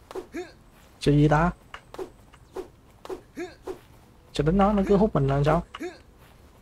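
A blade swishes sharply through the air, again and again.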